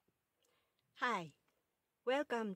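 A woman speaks calmly, close to a microphone.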